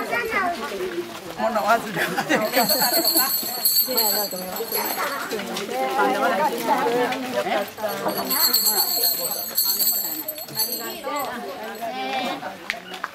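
Elderly women chat and laugh with animation close by.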